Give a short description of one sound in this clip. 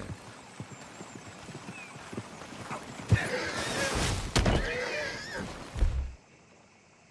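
A wagon rolls by.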